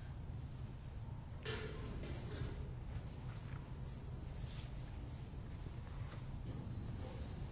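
Objects knock and clatter as equipment is handled in an echoing room.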